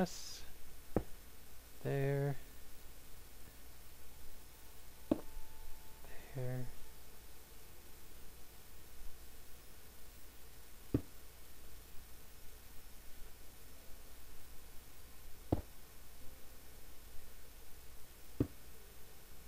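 Blocks are set down with short, sharp clicks now and then.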